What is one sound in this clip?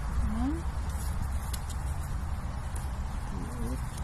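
A donkey tears and chews grass close by.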